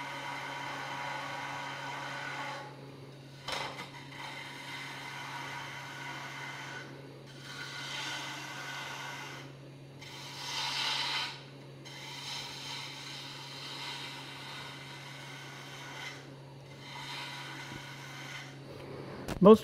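A chisel scrapes and hisses against spinning wood in repeated bursts.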